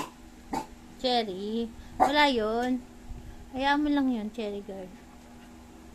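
A puppy yelps and whines in high bursts.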